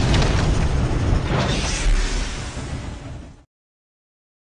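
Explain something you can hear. A steam train rumbles loudly along the tracks and then falls silent.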